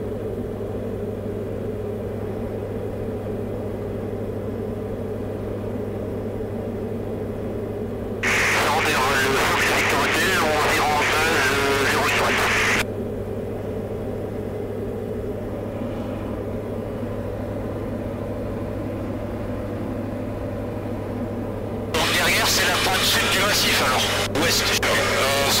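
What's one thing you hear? A small plane's engine drones steadily in flight.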